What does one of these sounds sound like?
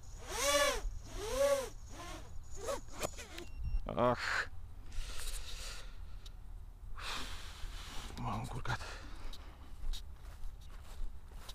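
Wind buffets a small drone as it tumbles through the air.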